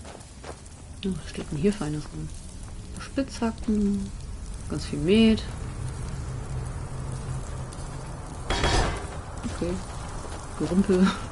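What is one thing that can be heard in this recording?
A young man talks calmly and close to a microphone.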